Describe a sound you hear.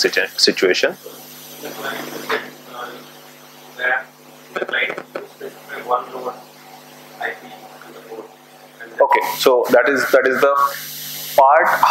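A man speaks steadily into a microphone.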